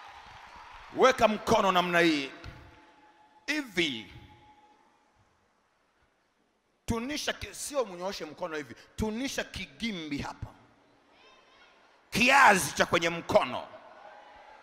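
A man preaches forcefully through a microphone in a large echoing hall.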